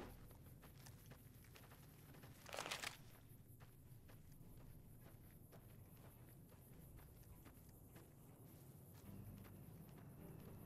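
Footsteps crunch steadily on dry dirt.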